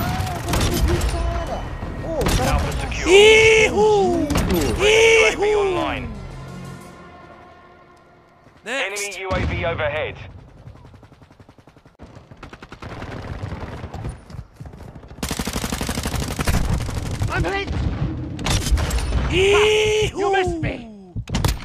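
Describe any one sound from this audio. A shotgun fires loud blasts.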